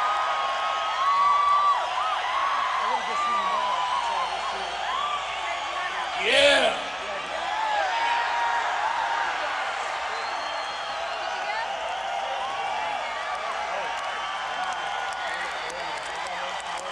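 A large crowd cheers and whistles loudly in a big echoing space.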